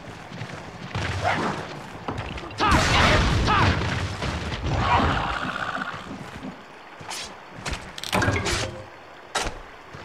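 A sword slashes and strikes a creature with heavy thuds.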